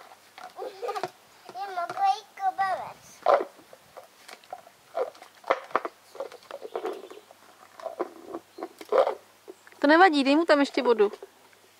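A plastic bowl scrapes and knocks on concrete.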